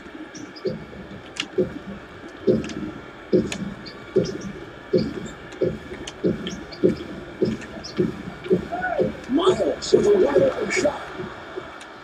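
A basketball bounces rhythmically on a hardwood court.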